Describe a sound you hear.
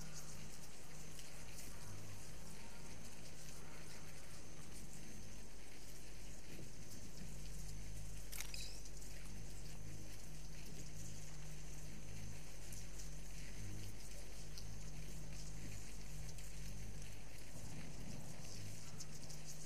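Electric beams hum steadily with a low pulsing drone.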